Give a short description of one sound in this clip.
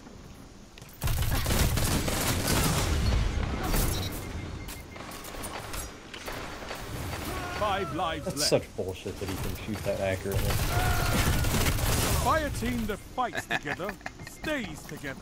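Gunshots crackle in rapid bursts.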